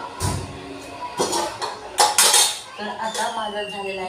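Metal pots clink and clatter.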